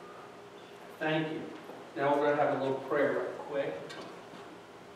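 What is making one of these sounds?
A man speaks in a deep voice in a room with slight echo.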